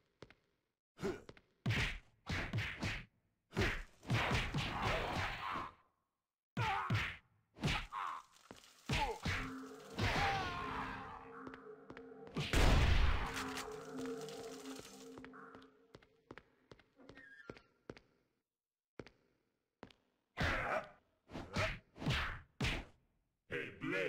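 Heavy punches and kicks land with dull thuds.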